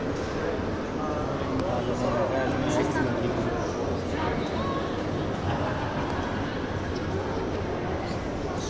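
Men and women chat in a murmur that echoes through a large hall.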